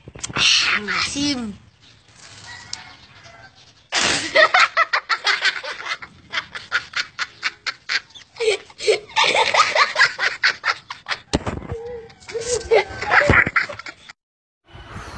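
Boys shout and laugh loudly close by.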